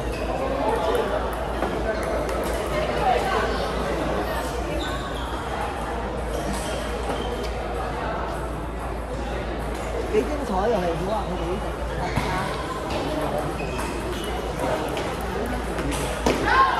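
Women chat nearby in a lively murmur.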